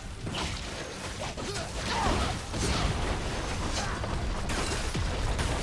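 Game spells whoosh and burst in a fight.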